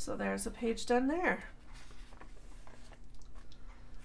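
A paper page turns over with a soft flutter.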